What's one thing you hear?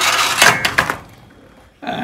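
A cupboard door slides open with a scraping rattle.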